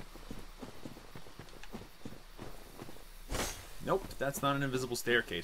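Armoured footsteps crunch steadily over rough ground.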